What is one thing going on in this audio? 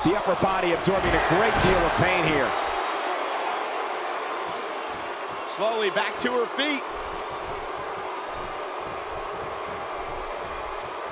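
A large crowd cheers and murmurs steadily in an echoing arena.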